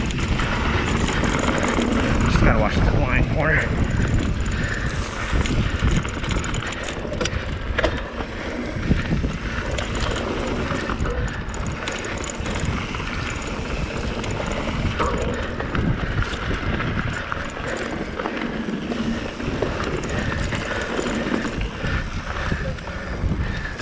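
A bicycle rattles over bumps and stones.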